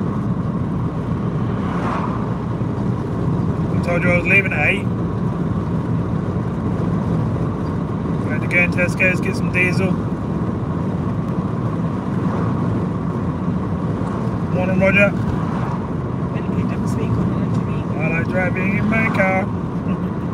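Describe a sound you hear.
Oncoming cars whoosh past.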